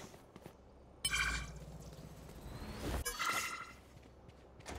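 A bright chiming game effect rings out twice.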